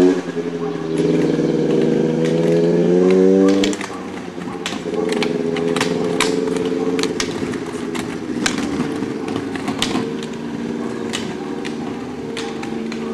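Roller ski wheels whir steadily on asphalt.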